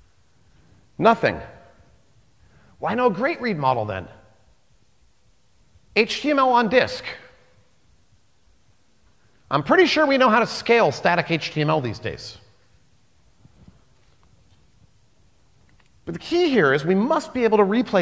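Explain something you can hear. A man speaks with animation through a microphone, in bursts with pauses, in a large hall.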